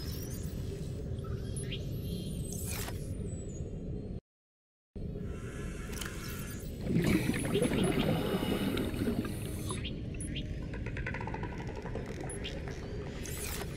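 Soft menu clicks and chimes sound now and then.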